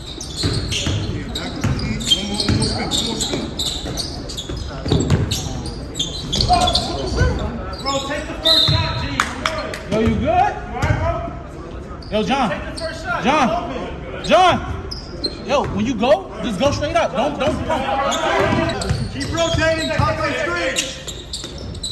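Young men shout and call out during play in an echoing hall.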